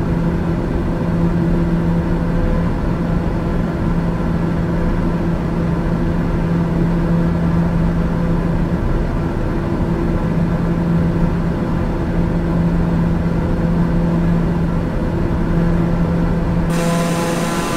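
A propeller engine drones steadily, muffled inside a small cockpit.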